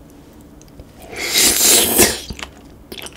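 A man slurps and bites into chewy food close to a microphone.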